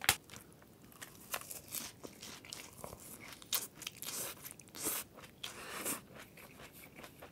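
A man slurps noodles and chews loudly.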